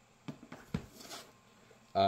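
A heavy book thumps onto a stack of books.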